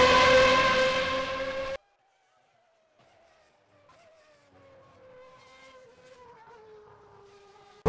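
A racing car engine roars loudly as it passes close by, then drones on more faintly in the distance.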